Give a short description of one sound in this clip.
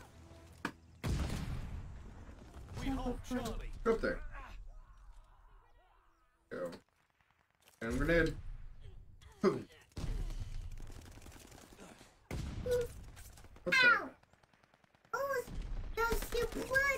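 Gunshots bang in short, loud bursts.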